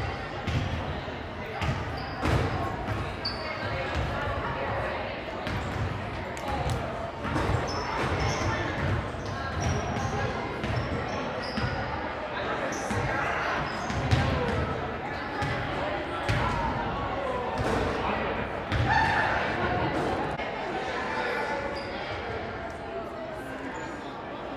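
Children shout and chatter across a large echoing gym.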